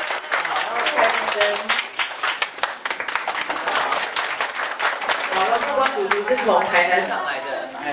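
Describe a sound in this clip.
Men and women laugh loudly nearby.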